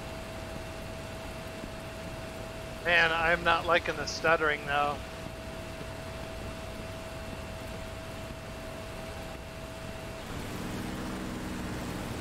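A propeller aircraft engine drones steadily.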